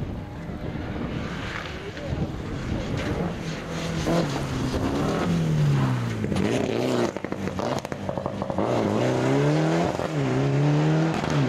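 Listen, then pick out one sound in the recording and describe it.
A rally car's engine roars loudly, rising and falling in pitch as the car speeds past.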